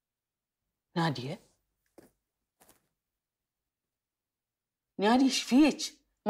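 An older woman speaks up sharply and with agitation, close by.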